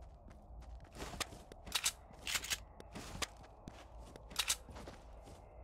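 Loud gunshots fire in quick bursts.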